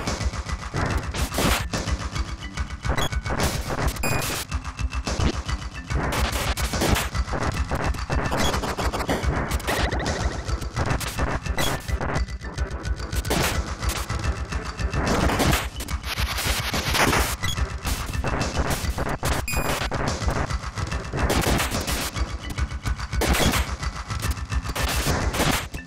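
Game music plays with a steady beat.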